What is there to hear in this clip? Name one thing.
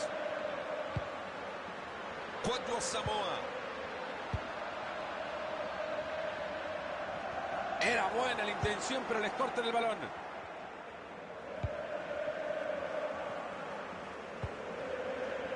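A football is kicked with short dull thuds.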